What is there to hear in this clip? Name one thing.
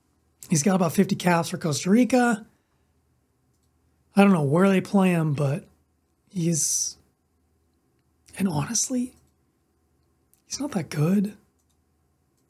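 A man talks calmly and with animation into a close microphone, in short bursts with pauses.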